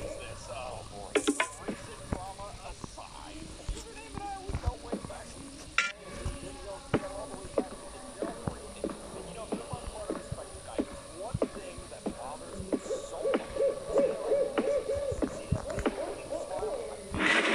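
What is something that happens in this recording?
Footsteps thud on wooden floors and stairs.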